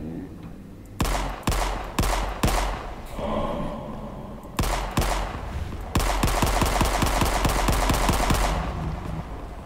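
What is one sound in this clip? A video game machine gun fires in bursts.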